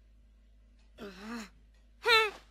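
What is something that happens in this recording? A young boy speaks grumpily.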